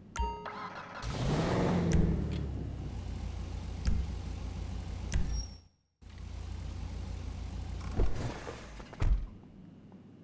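A car engine revs loudly and then idles in an enclosed space.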